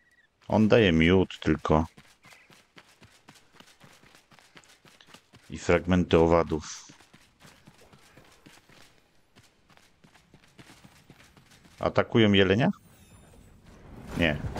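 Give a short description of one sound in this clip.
Footsteps run quickly along a dirt path.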